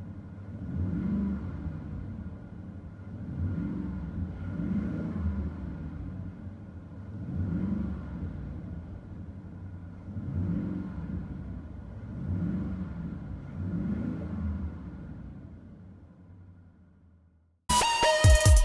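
An engine idles with a low, steady hum between revs.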